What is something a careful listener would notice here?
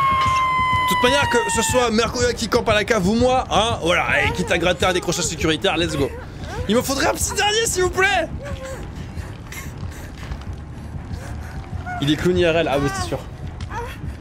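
A man talks and laughs with animation close to a microphone.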